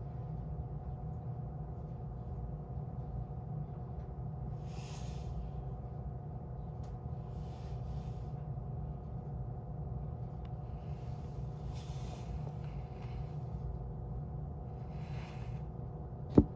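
A train engine idles with a low, steady hum, heard from inside the carriage.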